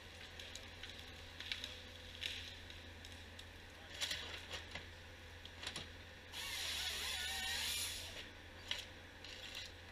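Wood knocks and branches crack as a machine feeds a log.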